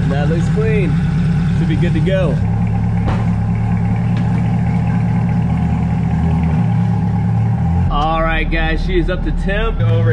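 A sports car engine rumbles steadily at idle, its pitch shifting now and then.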